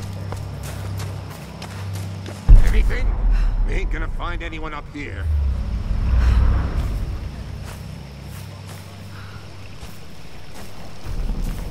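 Footsteps crunch and rustle through dry undergrowth.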